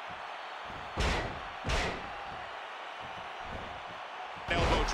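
Heavy bodies slam onto a wrestling mat with loud thuds.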